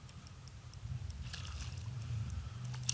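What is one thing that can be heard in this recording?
A fishing rod swishes through the air in a cast.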